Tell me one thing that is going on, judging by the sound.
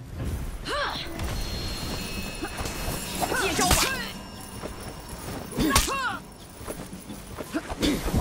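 Steel weapons clash in a fight.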